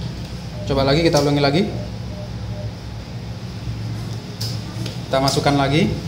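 A cash machine's card slot whirs as a card slides out.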